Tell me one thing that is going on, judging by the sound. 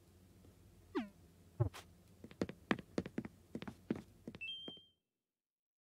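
Short game chimes pop up as menus open and close.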